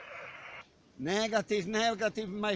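A man speaks loudly and clearly into a radio handset close by.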